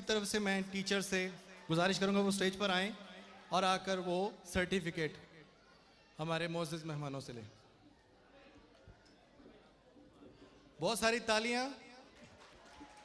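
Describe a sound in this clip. A man speaks with animation into a microphone, heard through loudspeakers in a large hall.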